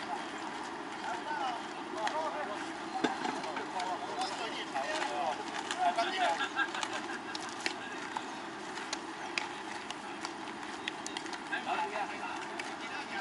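Young male players shout and call out across an open field.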